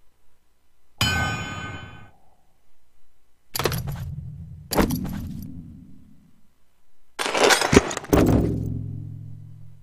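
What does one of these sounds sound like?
A video game plays short chimes and whooshes as menus open and close.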